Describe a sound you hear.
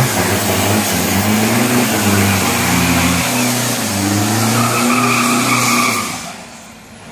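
A car engine roars loudly at high revs.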